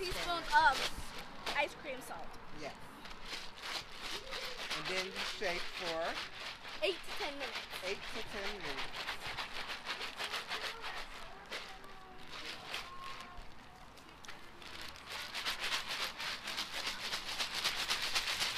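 A young girl speaks softly and calmly close to a microphone.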